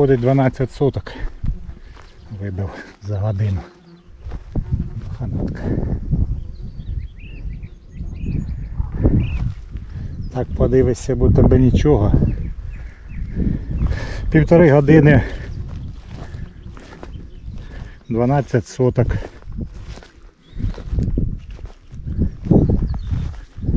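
Footsteps swish and crunch through cut grass.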